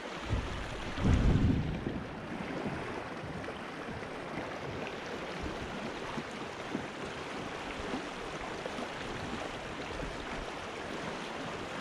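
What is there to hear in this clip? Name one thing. A river rushes and splashes over rapids close by.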